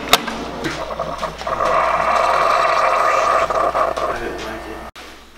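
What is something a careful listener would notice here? A coffee maker hums and hisses as coffee streams into a cup.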